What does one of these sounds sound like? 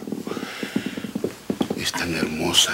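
A young man sobs.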